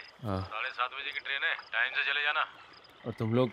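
A young man speaks into a phone nearby.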